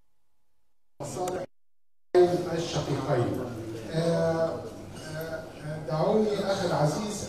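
A middle-aged man speaks firmly into microphones.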